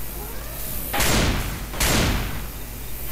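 A shotgun fires loud blasts.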